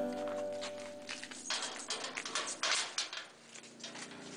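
A metal cage gate rattles and clanks shut.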